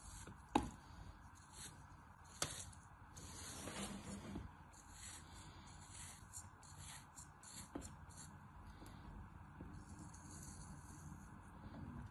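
A small blade scrapes and slices through crumbly sand.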